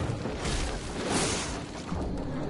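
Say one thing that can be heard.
A magical blast crackles and booms.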